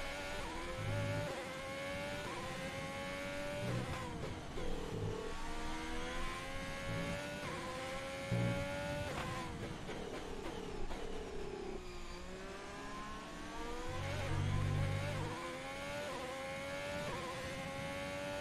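A racing car engine screams, rising in pitch through quick gear changes and dropping under braking.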